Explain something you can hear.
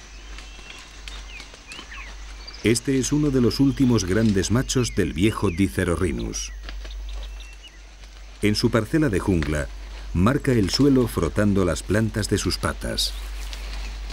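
A rhinoceros tramples through dry leaves and undergrowth.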